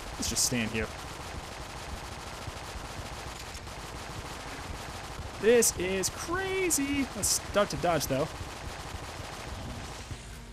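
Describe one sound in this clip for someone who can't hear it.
Gunfire from a video game fires in rapid bursts.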